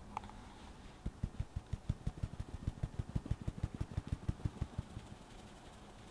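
A metal sieve taps rapidly as flour sifts through it.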